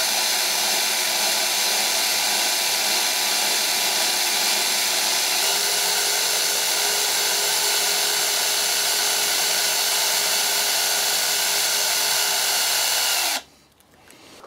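A machine whirs loudly and steadily, then stops abruptly.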